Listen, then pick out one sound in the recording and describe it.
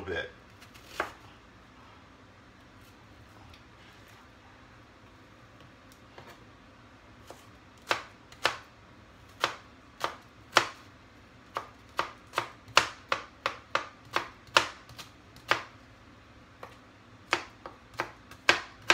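A knife chops on a cutting board in quick taps.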